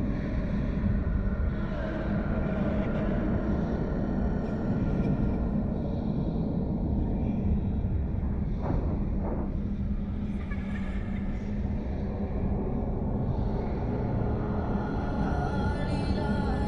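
Flames roar with a deep, steady rumble.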